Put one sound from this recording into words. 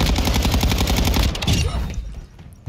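A rifle fires in a rapid burst of loud shots.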